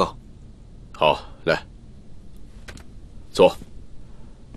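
An older man speaks briefly in a low voice.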